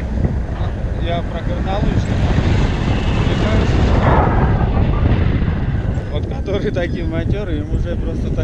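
A man speaks loudly over the wind, close by.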